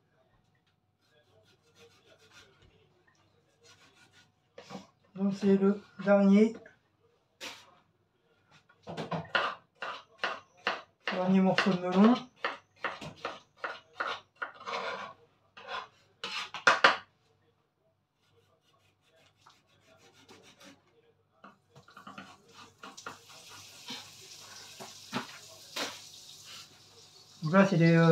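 A knife chops on a wooden board.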